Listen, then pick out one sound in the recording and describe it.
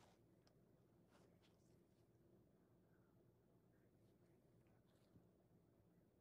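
Gloved fingers tap and rub soft sponges.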